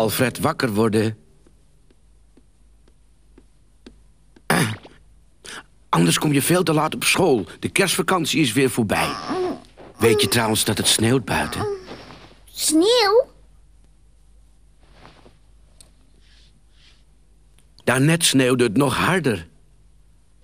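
A man speaks warmly and calmly, like a storyteller, close to the microphone.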